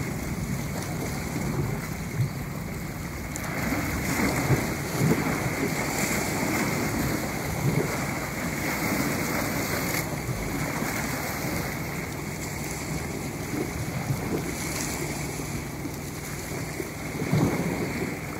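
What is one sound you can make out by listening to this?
Small waves wash and splash against the shore.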